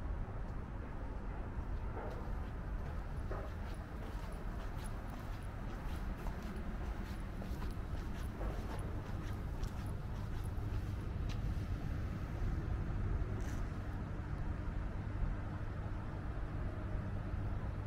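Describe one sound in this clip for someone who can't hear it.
Footsteps tap on paving stones outdoors.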